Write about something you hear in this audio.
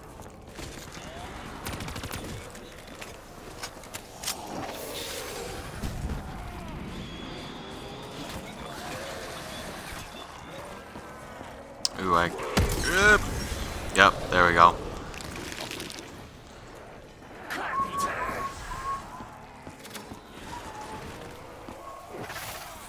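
A weapon fires with sharp blasts.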